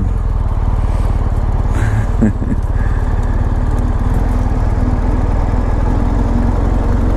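A motorcycle engine idles with a steady, low rumble close by.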